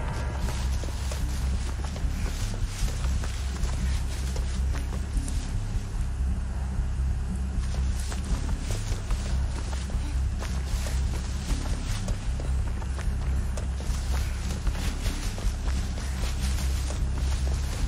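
Tall dry corn stalks rustle as someone pushes through them.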